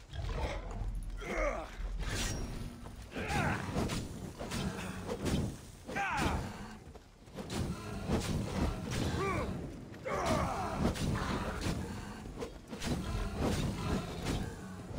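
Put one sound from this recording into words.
A large beast growls and roars loudly.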